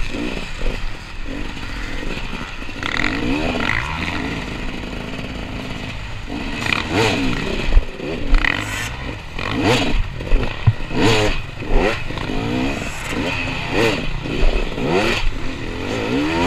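Other dirt bike engines whine nearby.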